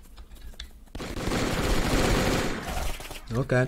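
A loud burst of crackling explosions and gunfire rips through the air.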